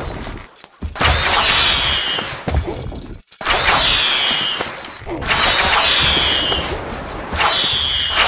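Arrows whoosh through the air in quick volleys.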